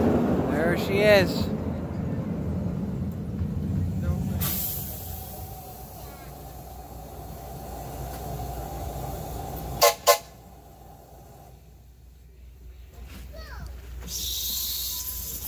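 A large locomotive idles nearby with a low, steady rumble.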